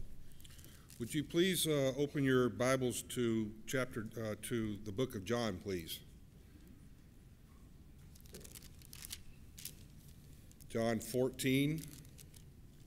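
A man reads aloud calmly through a microphone in a large echoing hall.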